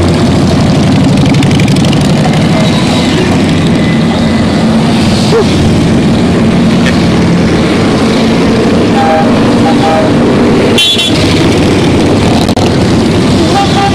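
Motorcycle engines rumble loudly as a long line of motorcycles rides past close by.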